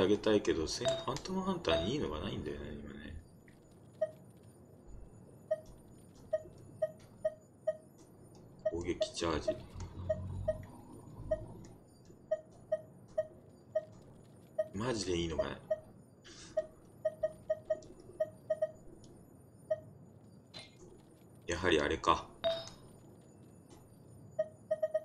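Short electronic chimes ring again and again in quick succession.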